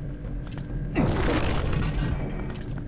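A heavy stone door grinds open.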